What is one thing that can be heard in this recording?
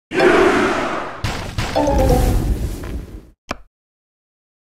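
Battle sound effects clash and rumble loudly, then stop abruptly.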